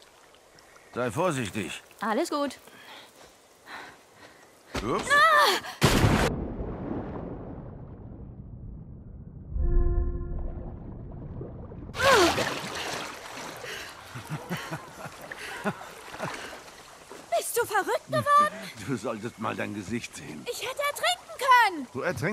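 A young girl talks with animation.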